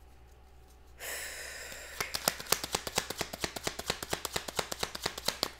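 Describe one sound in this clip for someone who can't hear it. Playing cards riffle and flap rapidly as they are shuffled.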